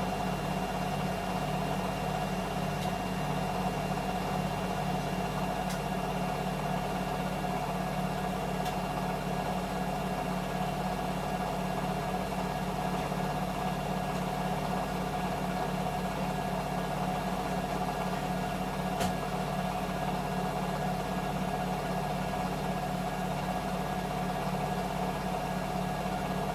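A washing machine spins fast with a steady whirring hum.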